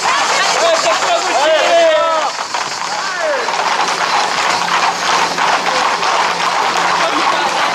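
A crowd of young men shouts and whistles outdoors.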